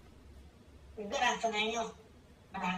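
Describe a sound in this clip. A woman's recorded voice greets over a phone loudspeaker.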